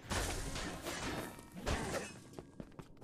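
A fiery explosion bursts and crackles.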